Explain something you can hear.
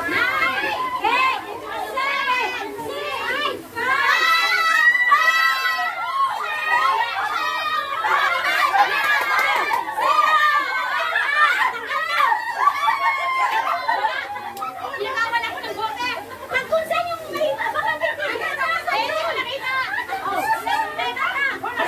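A group of young women shout, cheer and laugh excitedly close by.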